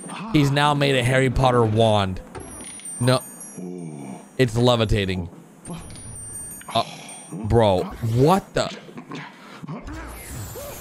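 A young man talks excitedly into a close microphone.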